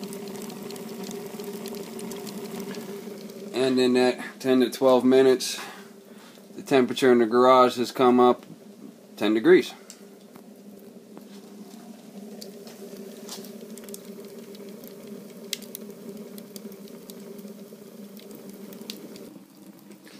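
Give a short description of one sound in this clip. A wood fire roars steadily.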